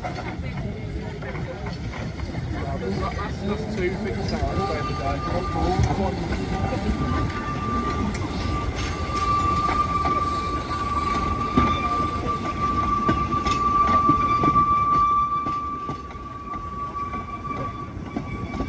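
Metal wheels clank over rail joints.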